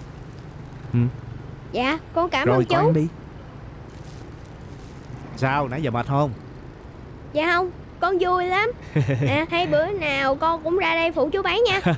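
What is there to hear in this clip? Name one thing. A boy speaks close by in a lively voice.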